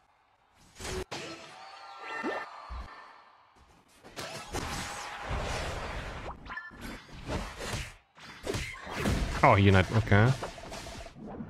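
Game sound effects of blows and bursts clash and crackle.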